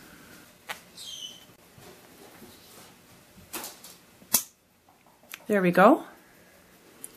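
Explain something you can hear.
A small parrot chirps and squawks loudly.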